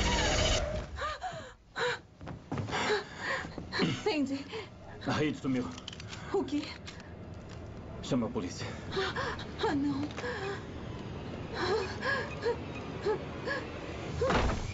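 A young woman gasps and whimpers in fear, close by.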